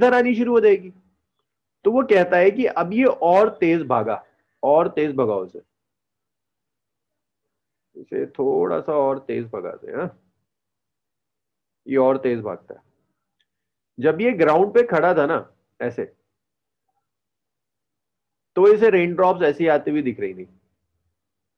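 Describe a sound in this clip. A woman explains calmly over an online call microphone, in bursts with pauses.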